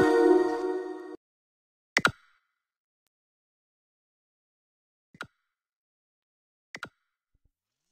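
Soft menu clicks sound as game tabs are switched.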